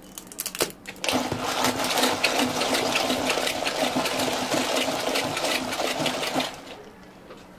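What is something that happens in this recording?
A straw stirs and rattles ice inside a plastic cup.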